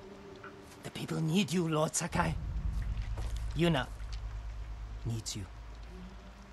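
A man speaks earnestly and close by.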